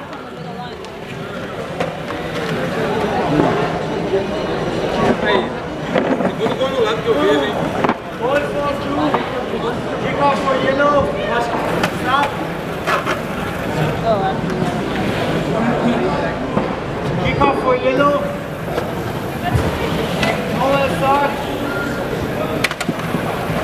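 Small wheeled robots whir as they roll across a hard floor.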